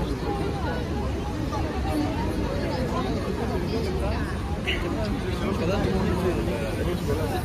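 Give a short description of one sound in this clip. A crowd of men and women chatters and shouts nearby outdoors.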